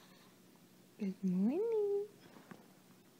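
A baby coos briefly, close by.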